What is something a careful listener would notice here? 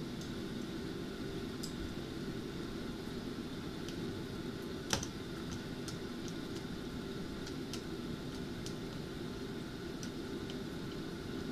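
A pot of water boils and bubbles steadily.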